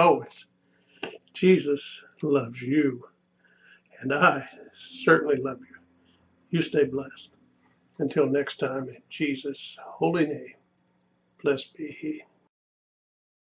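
An elderly man speaks calmly and earnestly close to a microphone.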